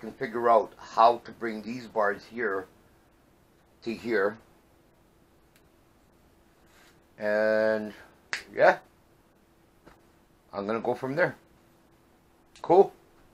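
A man talks calmly close by, in short bursts with pauses.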